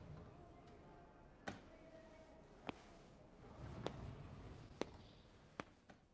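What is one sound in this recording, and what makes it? Hard shoes step slowly on a floor.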